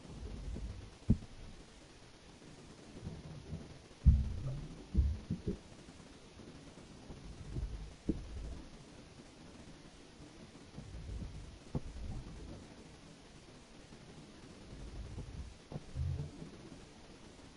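A large creature swims through water with low, muffled thumps and swishes.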